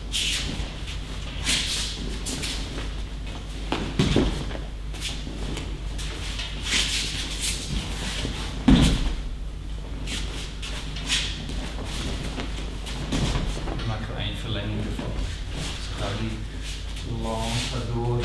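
Bare feet and cloth rustle and slide across a mat.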